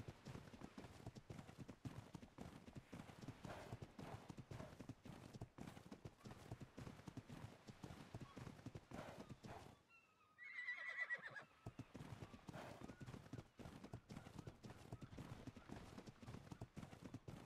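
An animal's feet thud quickly on sand as it runs.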